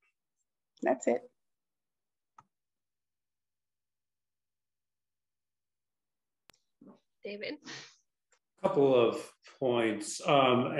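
A woman speaks calmly through an online call, with pauses.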